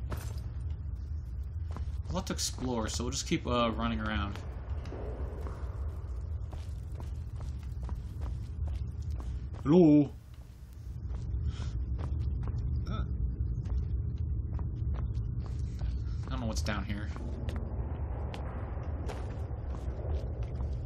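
Footsteps crunch slowly on stone and gravel.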